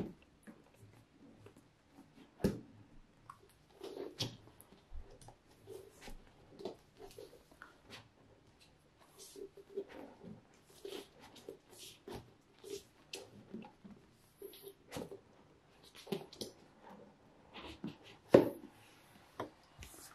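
Hands rub and tap on a cardboard box.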